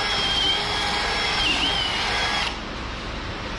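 A cordless drill whirs with a high steady whine.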